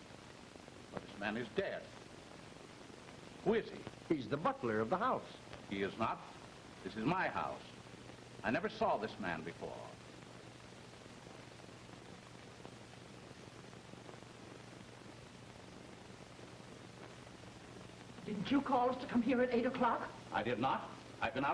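A man speaks, heard through an old, hissy film soundtrack.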